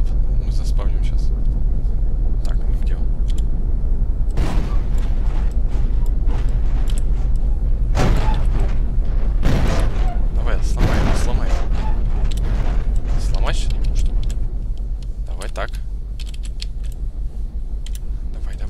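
A young man talks into a headset microphone, close and casual.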